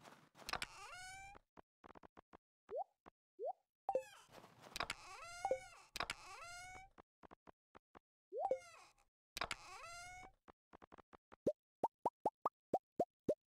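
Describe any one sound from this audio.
Short, soft clicks of a game menu sound quickly one after another.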